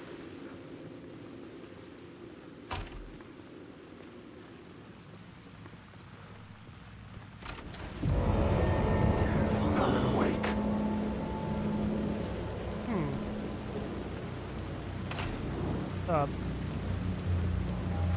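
A man's footsteps fall slowly on a hard floor.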